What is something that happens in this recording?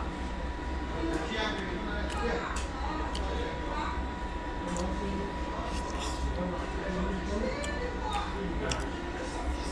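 A man chews food noisily close by.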